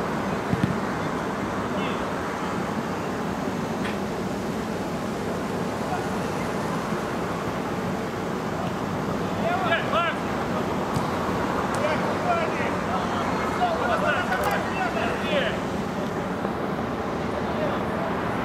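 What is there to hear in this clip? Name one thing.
Spectators murmur and chat nearby.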